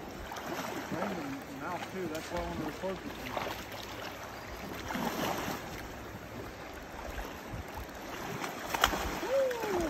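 A man wades through shallow water with splashing steps.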